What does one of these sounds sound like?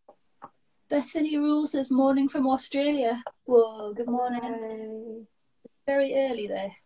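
A young girl speaks and laughs close by.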